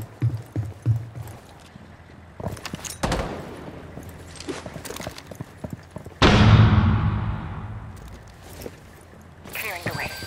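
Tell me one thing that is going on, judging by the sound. Footsteps clang on a metal floor.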